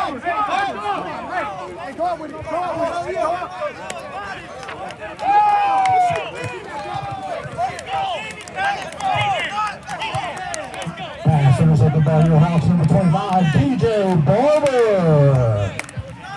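A crowd cheers and shouts outdoors at a distance.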